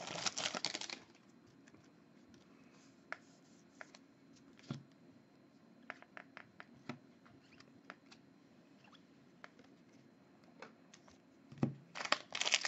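Trading cards slide and click against each other as they are shuffled by hand.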